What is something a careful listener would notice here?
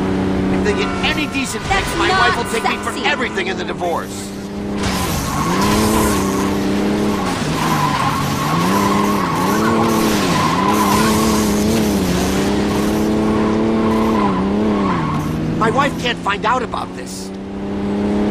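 Tyres screech as a car slides around corners.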